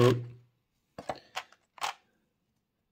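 A thin plastic tray crackles as hands handle it.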